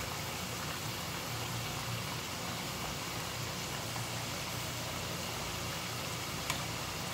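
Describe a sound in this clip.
Food sizzles steadily in hot oil in a frying pan.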